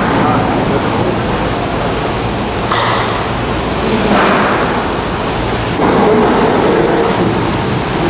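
Gondola lift cabins rattle and clatter along the rails inside a station.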